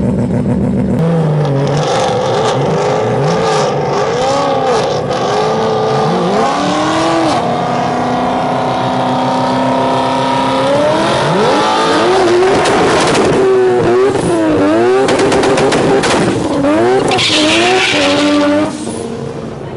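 A car engine revs up and down loudly, again and again.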